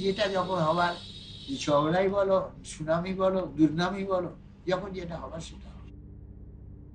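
An elderly man speaks slowly and earnestly close to the microphone.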